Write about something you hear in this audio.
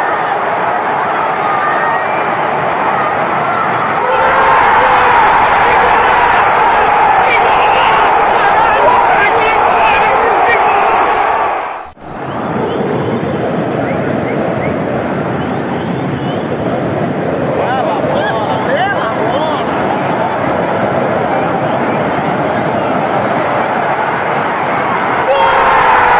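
A large stadium crowd sings and chants.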